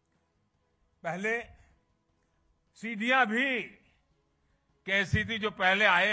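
An elderly man speaks forcefully into a microphone, heard through loudspeakers, in short bursts with pauses.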